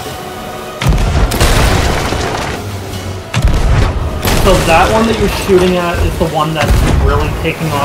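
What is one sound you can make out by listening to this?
A cannon fires with loud booming blasts.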